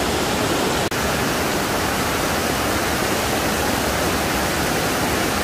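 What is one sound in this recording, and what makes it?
A shallow stream rushes and babbles over stones.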